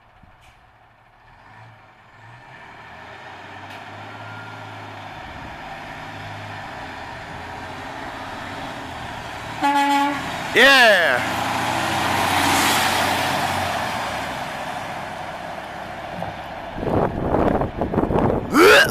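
A heavy truck engine rumbles, growing louder as it approaches, roars past close by, then fades away.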